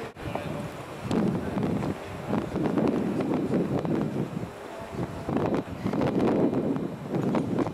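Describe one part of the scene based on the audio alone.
A group of men chat among themselves outdoors.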